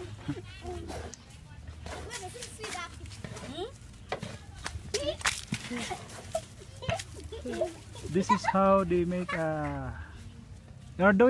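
Women and children talk nearby outdoors.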